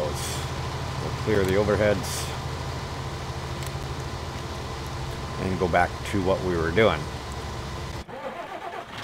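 A combine harvester engine hums steadily.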